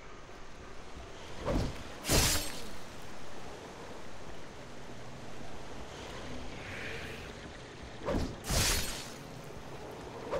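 A creature growls as it approaches.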